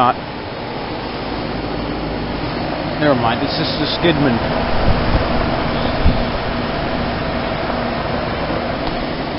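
An air conditioner's outdoor fan whirs with a steady loud hum.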